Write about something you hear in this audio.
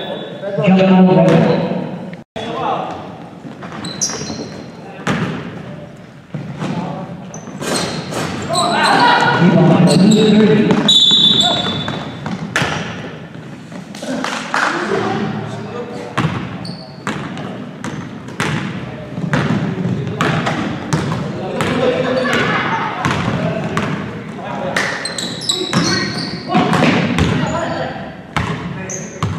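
Men shout and call out during the game.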